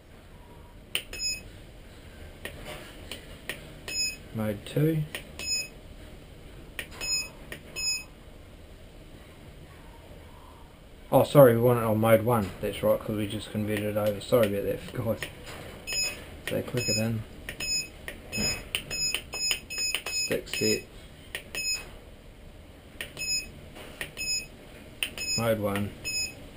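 A radio transmitter beeps sharply each time a button is pressed.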